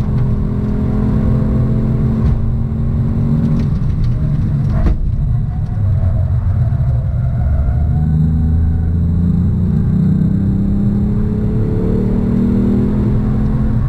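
A car engine drones loudly from inside the cabin, easing off and then revving higher.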